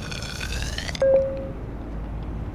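A short electronic beep sounds.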